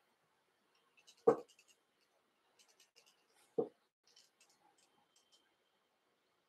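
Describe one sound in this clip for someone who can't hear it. Thread rustles and crackles faintly as it is wound around a hook.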